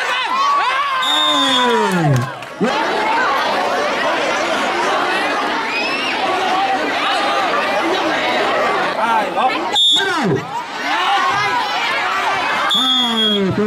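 A large crowd of children and adults cheers and shouts excitedly outdoors.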